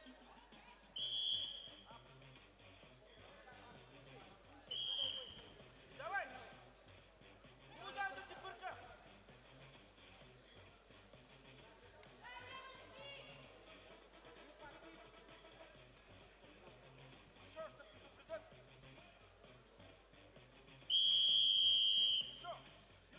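A referee's whistle blows sharply in short blasts.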